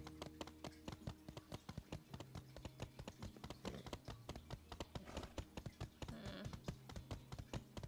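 Hooves pound quickly and steadily as a horse gallops.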